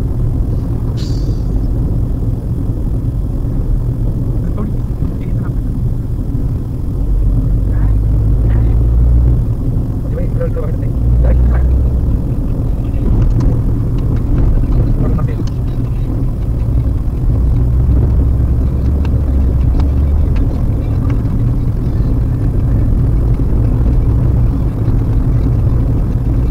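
A car engine hums steadily as tyres roll over a road.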